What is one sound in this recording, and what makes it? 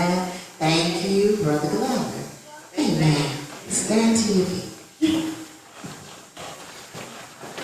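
A group of men and women sing together in a large echoing hall.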